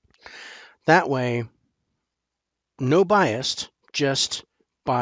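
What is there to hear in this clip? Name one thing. A middle-aged man talks with animation into a headset microphone.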